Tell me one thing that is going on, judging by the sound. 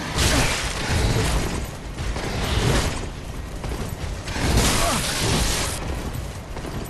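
Swords swing and clash with metallic clangs.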